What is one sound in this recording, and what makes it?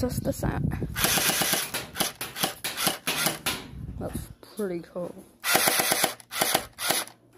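A toy blaster fires in rapid bursts of sharp clicks with a buzzing motor.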